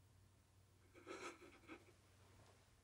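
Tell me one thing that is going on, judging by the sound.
An elderly man speaks briefly and quietly nearby.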